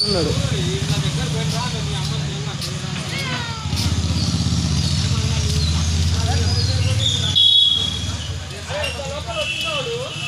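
A motor scooter engine hums nearby.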